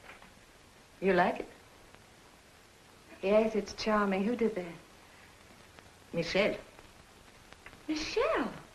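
A young woman speaks calmly in short phrases, with a faint hiss underneath.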